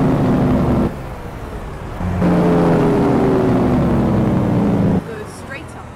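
A diesel semi truck engine pulls along a road, dropping off briefly between gears.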